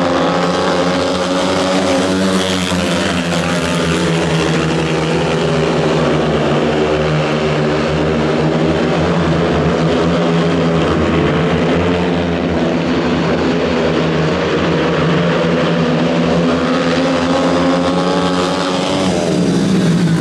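Speedway motorcycle engines roar loudly as they race past.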